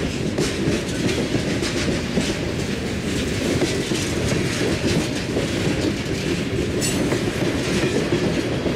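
A freight train rumbles past close by.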